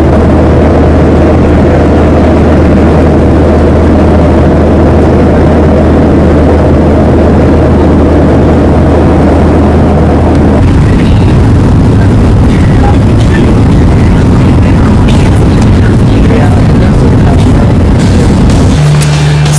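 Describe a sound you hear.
Jet engines roar steadily, heard from inside an airliner cabin.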